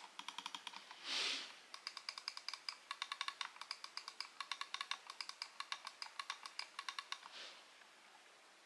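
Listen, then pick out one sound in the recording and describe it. A computer mouse slides across a cloth pad with a brief swish.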